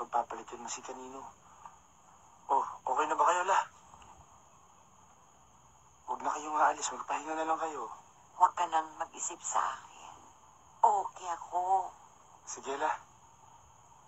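An older woman speaks softly and warmly at close range, in short bursts.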